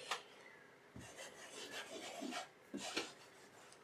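A cloth rubs softly over a small hard device.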